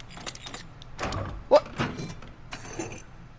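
A heavy mechanism clunks and unlocks.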